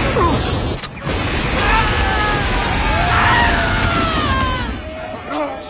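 An explosion blasts loudly.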